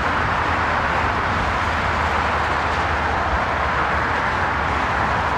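Traffic rushes steadily along a nearby highway.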